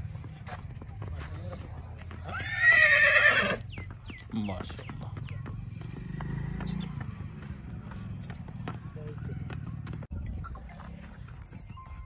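A horse's hooves clop on a dirt path.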